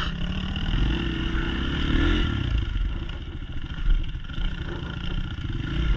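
A dirt bike engine putters and revs up close.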